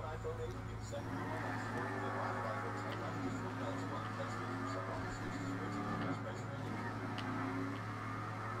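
A car engine runs as a car drives away.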